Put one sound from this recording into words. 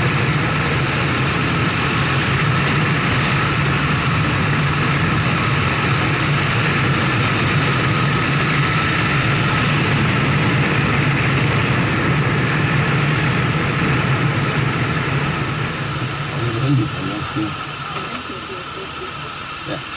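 A motorcycle engine hums steadily while riding, then quietens as it slows.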